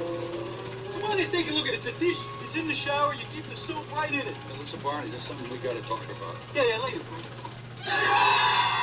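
A man speaks with animation, heard through a television speaker.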